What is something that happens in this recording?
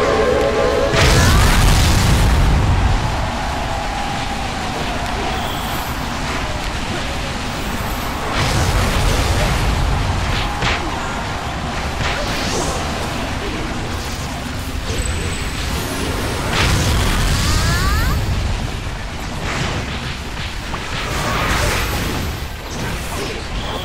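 Game sound effects of spells and blasts burst and whoosh repeatedly.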